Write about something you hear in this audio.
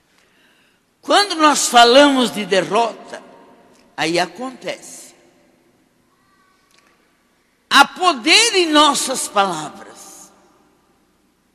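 An elderly woman preaches with feeling into a microphone, in a large echoing hall.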